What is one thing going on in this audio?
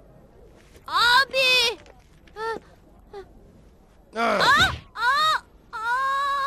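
A young boy speaks in a high, pleading voice.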